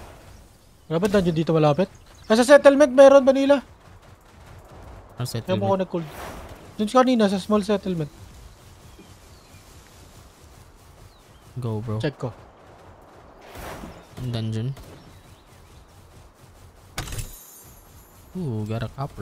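A man talks into a microphone in short bursts.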